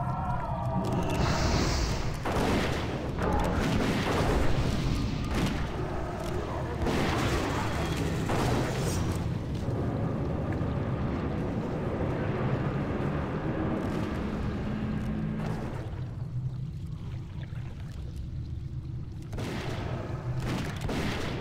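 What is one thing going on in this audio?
Magic spells blast and crackle in a fight.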